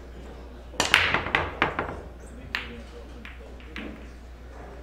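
Pool balls roll and knock against each other and the cushions.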